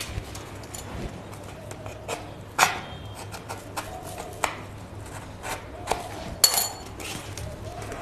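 A cardboard tube taps and scrapes close by as it is handled.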